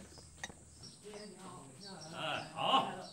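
A man greets someone warmly and with animation.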